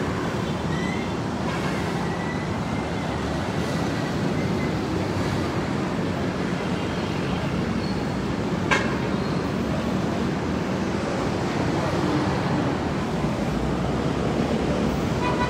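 A crowd murmurs and talks outdoors at a distance.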